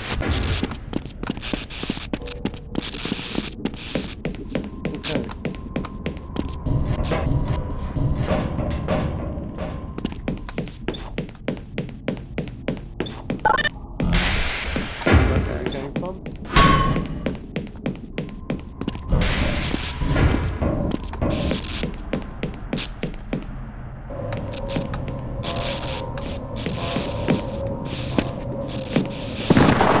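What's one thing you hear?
Footsteps clank steadily on a hard metal floor.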